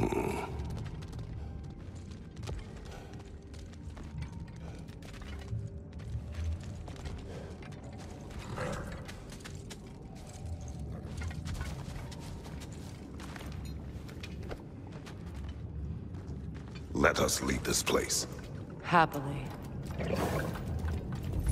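Footsteps crunch on rocky ground.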